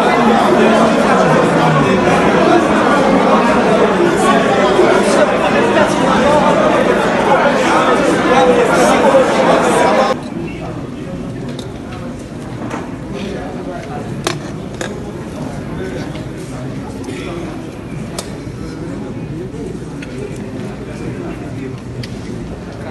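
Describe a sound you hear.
A crowd of men and women talk loudly all at once in a large echoing room, then the chatter drops to a quieter murmur.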